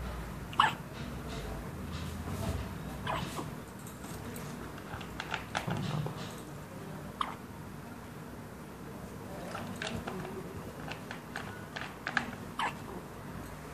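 A newborn baby makes soft little grunts and coos up close.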